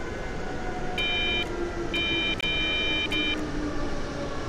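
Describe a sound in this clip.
A cab warning signal beeps in short bursts.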